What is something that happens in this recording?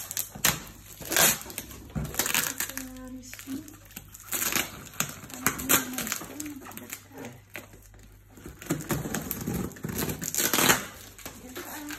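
Packing tape rips and crackles as it is pulled off cardboard.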